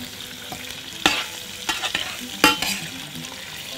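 A metal spoon scrapes and clinks against a pan.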